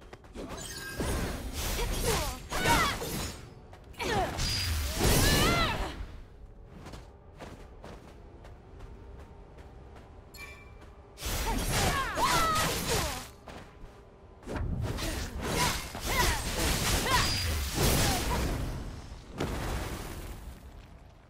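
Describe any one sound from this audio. Swords clash and slash in quick bursts.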